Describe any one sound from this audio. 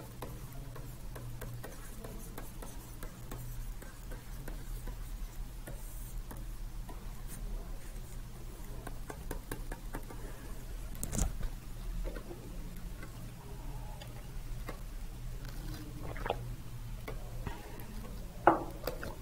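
A pen taps and scratches on a tablet.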